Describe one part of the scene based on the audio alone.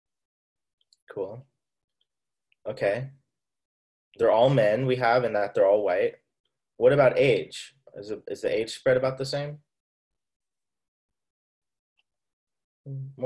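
A young man speaks calmly through an online call, with pauses.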